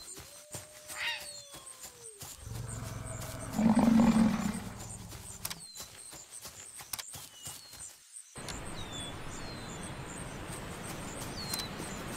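Hooves thud softly on grass.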